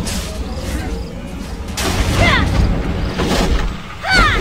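A magic spell whooshes and crackles.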